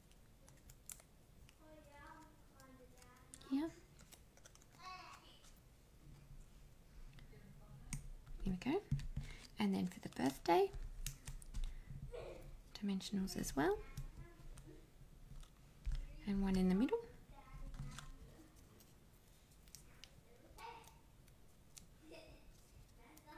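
Paper rustles and crinkles softly as hands handle it.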